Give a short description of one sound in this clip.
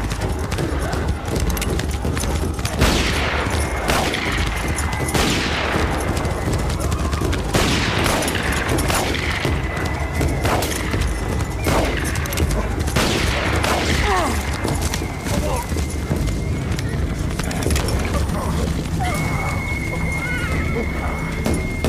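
Horses gallop with pounding hooves.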